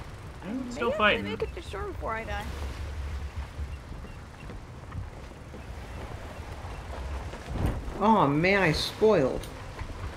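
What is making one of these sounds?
Sea waves wash softly against wooden planks.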